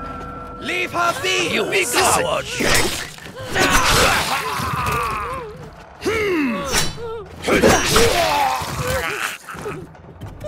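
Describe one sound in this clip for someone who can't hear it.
Swords clash and ring sharply.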